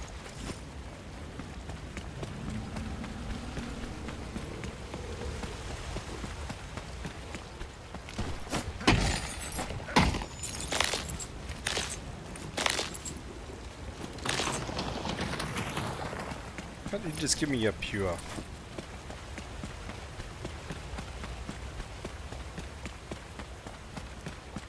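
Water sloshes steadily underfoot.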